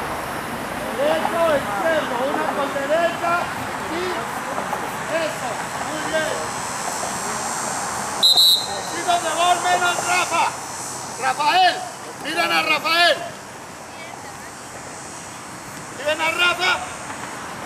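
An elderly man calls out instructions to children outdoors.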